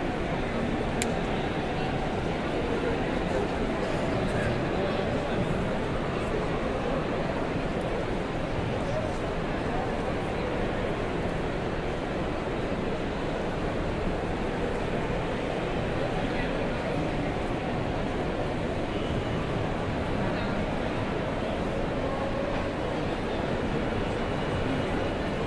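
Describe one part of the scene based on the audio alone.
A large crowd murmurs and chatters steadily in a big, echoing hall.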